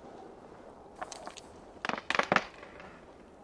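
Wooden dice rattle and clack in a wooden cup.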